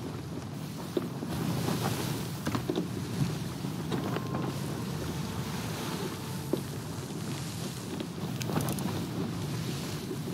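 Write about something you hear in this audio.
Wooden ship timbers creak and knock.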